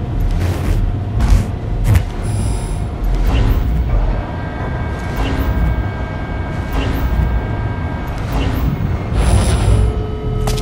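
Electronic beeps chirp from a keypad device.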